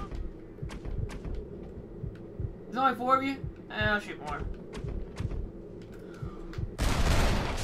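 Gunshots crack repeatedly at close range.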